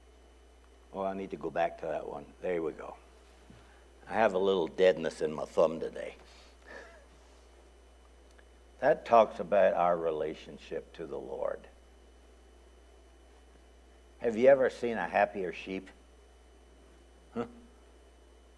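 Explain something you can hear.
An elderly man speaks calmly into a microphone, in bursts with long pauses.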